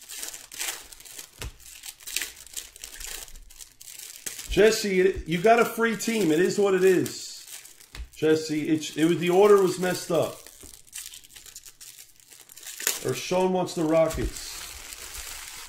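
Cardboard packs rustle and crinkle as they are handled close by.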